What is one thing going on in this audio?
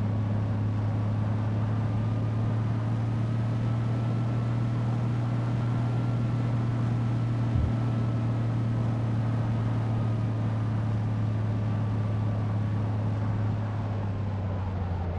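A bus engine drones steadily at high speed, its pitch rising slightly and then easing off.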